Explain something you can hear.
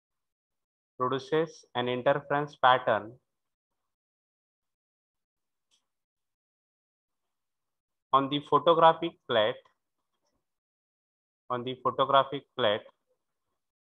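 A man lectures calmly into a microphone, in short phrases with long pauses.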